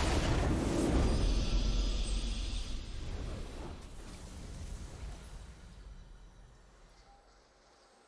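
A triumphant game fanfare swells and then fades away.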